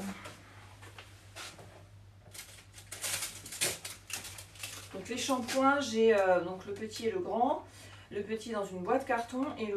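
Small cardboard boxes rustle and tap in a woman's hands.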